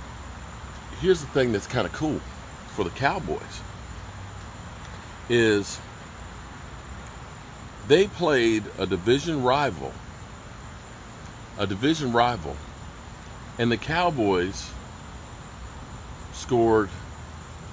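A middle-aged man speaks calmly and close up, with pauses.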